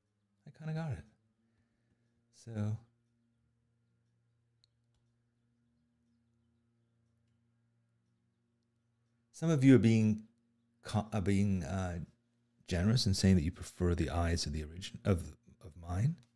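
An older man speaks calmly into a close microphone, with pauses.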